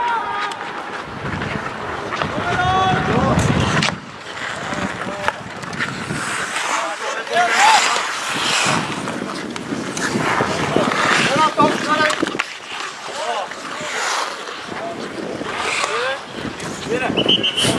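Players shout to each other across an open outdoor rink.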